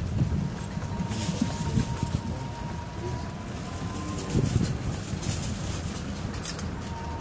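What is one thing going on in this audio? A small vehicle's engine rumbles as it drives along.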